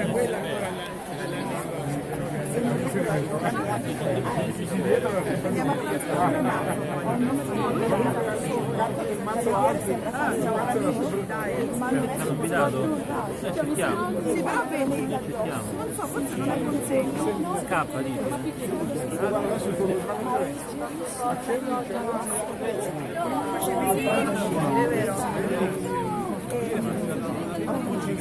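A large crowd of men and women chatter and call out all around, outdoors.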